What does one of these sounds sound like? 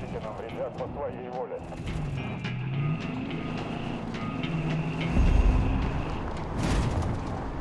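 Tyres rumble and crunch over rocky ground.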